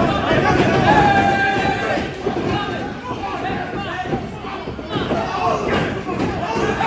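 Bodies thud against ring ropes and the mat.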